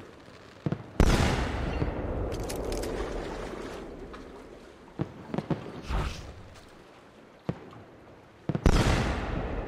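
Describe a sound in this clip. A pistol fires with a loud bang that echoes away.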